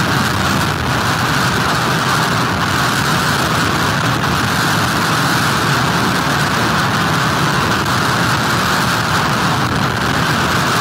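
Waves crash and surge against a pier.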